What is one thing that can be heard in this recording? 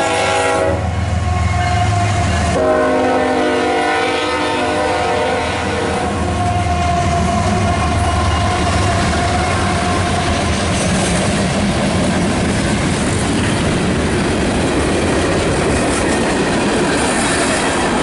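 Train wheels clatter and squeal over the rails.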